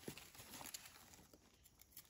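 A knife snips through a soft stem.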